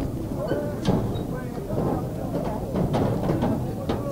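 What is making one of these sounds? Players' bodies thud together as they collide.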